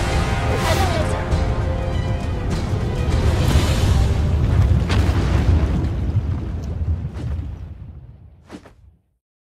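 Loud fiery explosions and deep rumbling boom, then fade away.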